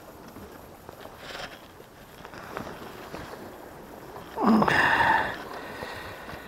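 A mesh net rustles softly as it is handled.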